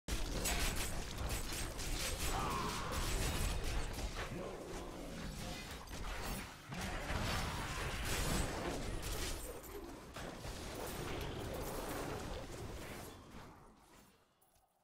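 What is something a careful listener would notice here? Magic blasts crackle and boom in rapid, heavy bursts, fading away at the end.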